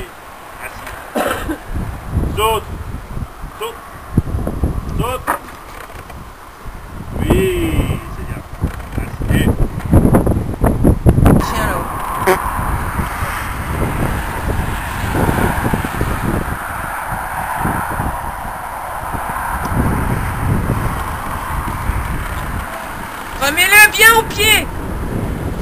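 A man calls out short, firm commands to a dog.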